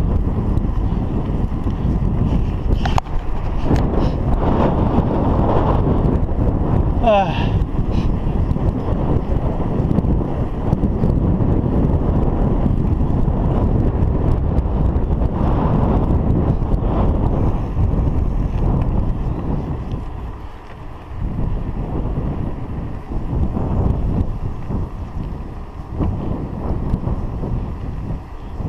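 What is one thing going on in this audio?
Wind rushes over a microphone on a moving bicycle.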